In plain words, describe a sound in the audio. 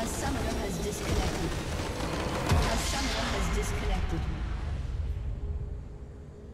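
A loud magical explosion bursts and crackles, then fades.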